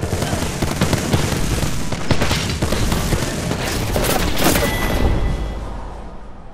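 Gunfire and bullet impacts crackle rapidly and loudly.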